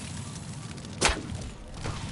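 A bow string twangs as an arrow is shot.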